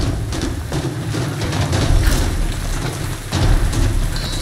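A fire crackles and roars nearby.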